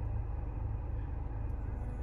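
A finger taps a touchscreen.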